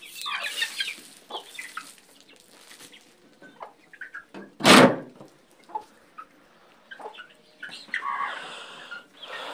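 Chickens cluck and squawk close by.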